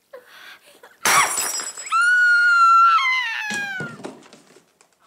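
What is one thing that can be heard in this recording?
A woman cries out in a long, high voice that slowly falls.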